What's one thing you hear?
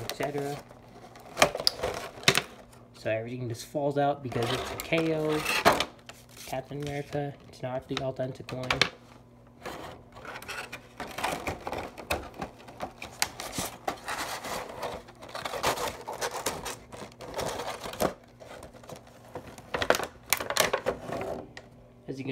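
Thin plastic packaging crinkles and crackles in someone's hands, close by.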